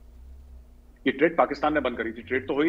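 A younger man speaks with animation over an online call.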